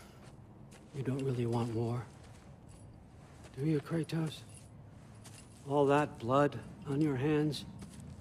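An elderly man speaks calmly in a deep voice, close by.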